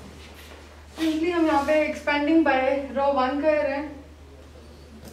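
A woman speaks clearly and steadily, close by.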